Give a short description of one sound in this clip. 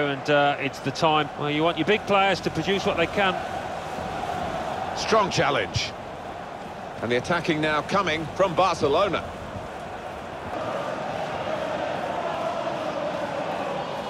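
A large stadium crowd murmurs.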